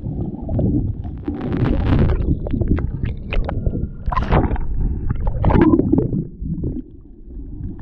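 Water splashes and laps loudly as the surface breaks.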